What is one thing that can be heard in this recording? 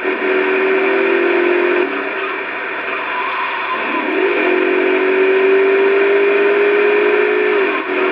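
A car engine hums and revs from a driving video game through a small, tinny television speaker.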